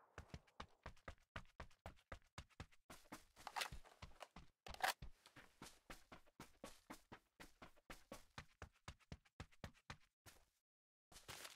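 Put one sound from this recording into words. Quick footsteps run through grass.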